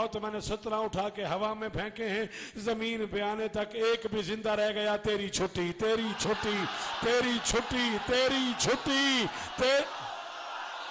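A man chants loudly into a microphone with a strong, melodic voice.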